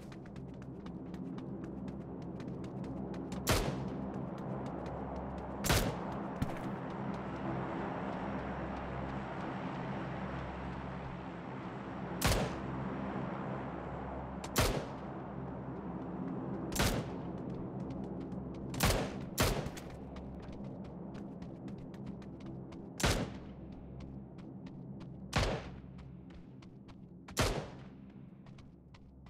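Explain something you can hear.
Footsteps patter quickly on hard ground and dirt.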